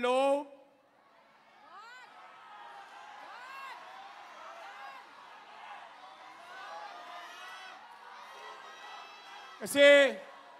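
A crowd cheers and chants.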